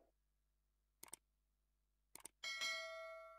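A computer mouse clicks twice.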